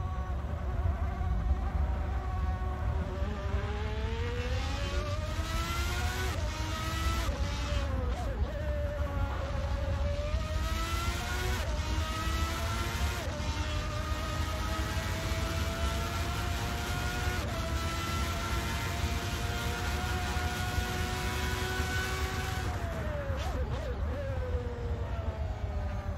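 A racing car engine whines loudly, rising in pitch and dropping sharply as it shifts and brakes.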